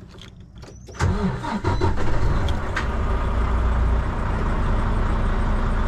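A truck's diesel engine cranks, starts and settles into a loud, low idle.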